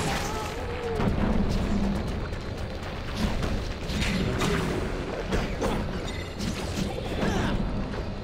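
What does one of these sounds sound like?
Punches and blows land with heavy thuds.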